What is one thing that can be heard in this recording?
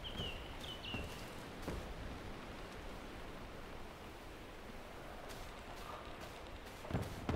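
Footsteps tread on grass and dirt.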